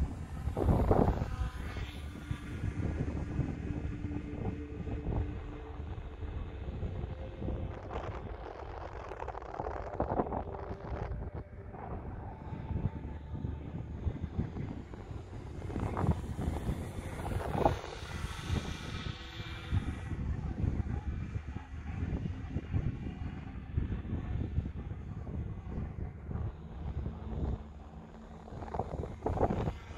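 A small model plane's motor whines overhead, rising and falling in pitch as it passes.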